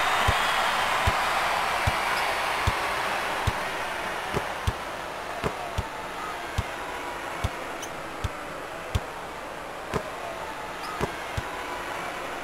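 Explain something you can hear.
A basketball bounces steadily on a hardwood floor.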